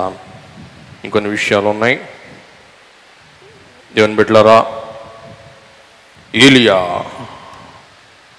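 A middle-aged man speaks slowly and solemnly into a microphone in an echoing hall, pausing between phrases.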